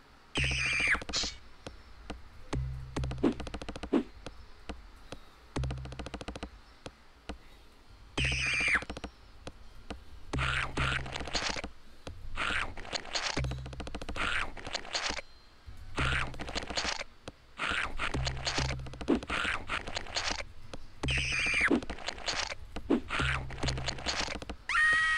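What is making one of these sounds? Video game music plays with a thumping low beat.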